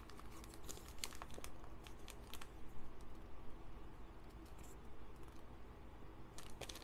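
A paper packet crinkles and rustles between fingers.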